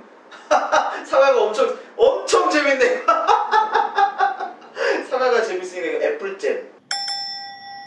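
A young man laughs loudly and talks with animation close by.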